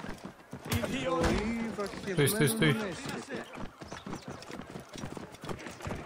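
Hooves clop on a stone pavement.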